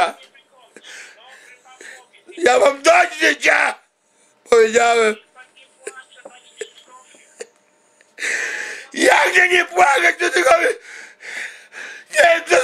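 A middle-aged man wails and sobs loudly close by, in bursts of crying speech.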